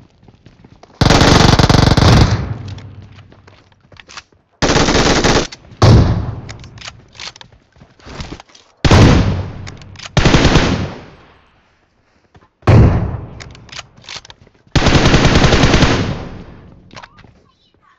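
Gunfire bursts loudly and rings out.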